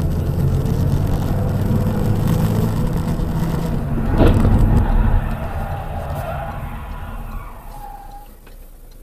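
A car engine hums steadily, then quiets down.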